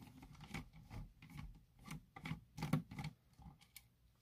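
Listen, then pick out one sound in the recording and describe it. A small screwdriver clicks and squeaks as it turns a screw.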